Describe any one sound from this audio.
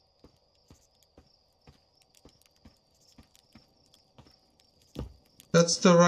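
Light footsteps tread steadily on a path.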